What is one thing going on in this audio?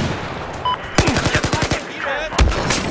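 A rifle fires rapid shots.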